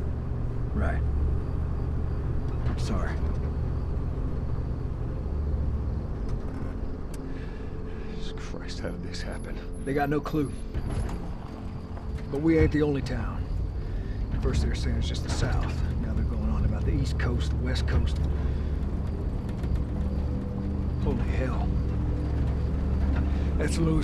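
A car engine hums steadily with a low rumble.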